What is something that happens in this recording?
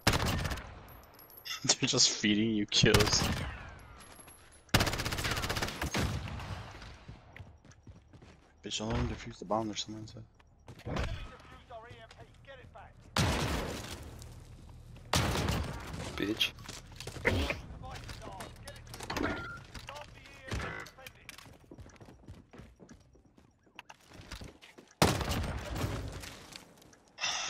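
Automatic rifle fire rings out in sharp bursts.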